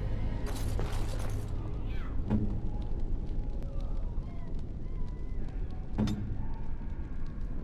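Armoured footsteps clank on a stone floor.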